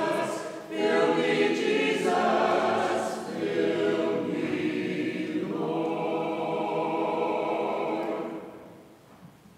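A congregation sings a hymn together in a large echoing hall.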